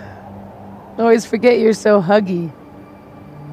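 A young woman speaks softly and affectionately, close by.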